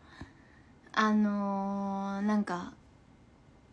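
A young woman lets out a long drawn-out cry.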